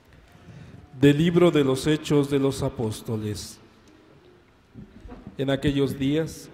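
A second man reads out steadily through a microphone.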